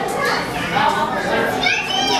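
A crowd of adults chatters nearby.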